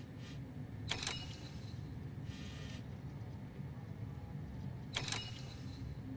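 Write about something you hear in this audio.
A menu clicks sharply, twice.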